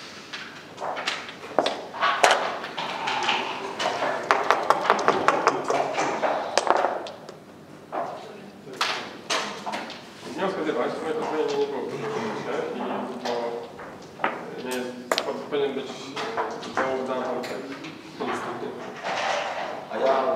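Game pieces click against a board.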